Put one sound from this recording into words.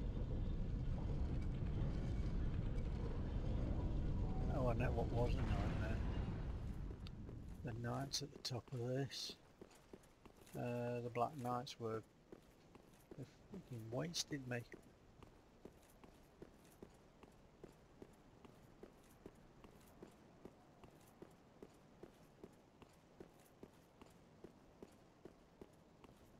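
Armoured footsteps run quickly on stone.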